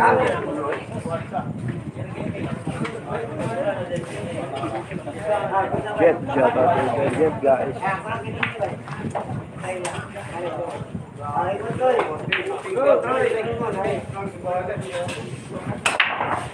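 Men talk and chatter nearby in a crowd.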